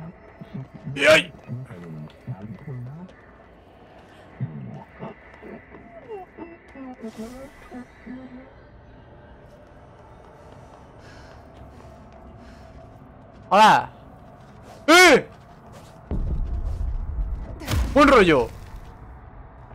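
A young man exclaims loudly close to a microphone.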